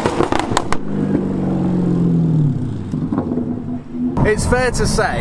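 A sports car engine roars and then winds down as the car pulls away.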